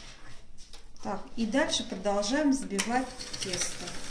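An electric hand mixer whirs in flour.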